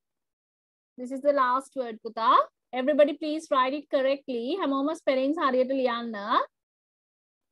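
A woman speaks clearly over an online call.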